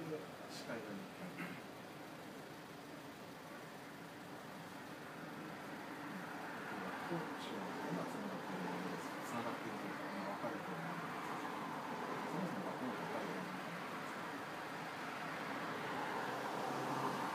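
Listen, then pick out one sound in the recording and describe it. A young man talks calmly across a table, close by.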